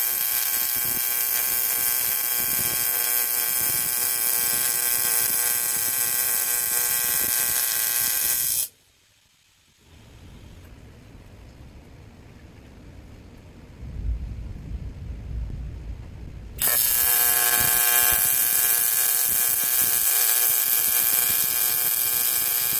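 A welding arc buzzes and hums steadily.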